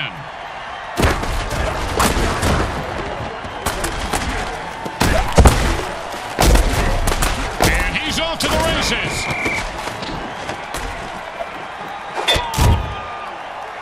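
Heavy bodies crash together in loud, thudding tackles.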